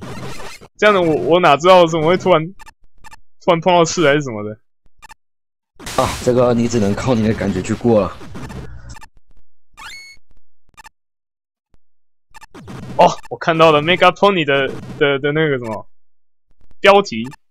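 Retro video game blaster shots zap in quick bursts.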